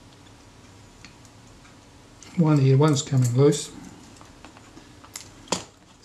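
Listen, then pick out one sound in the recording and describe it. A small metal tool scrapes and clicks against metal.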